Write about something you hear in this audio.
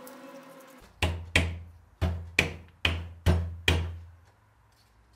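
A fan is knocked down onto a motor shaft with several sharp, ringing blows.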